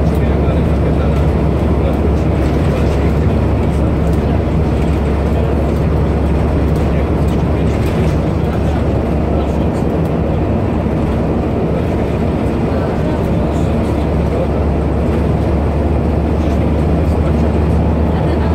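A bus engine hums steadily with a low drone.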